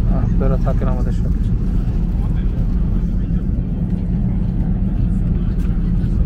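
A plane's engines drone with a steady low rumble.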